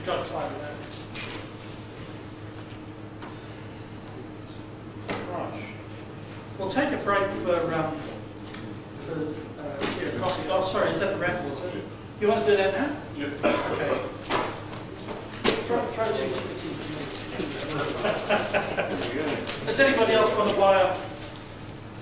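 A man speaks into a microphone in a large echoing room, pausing now and then.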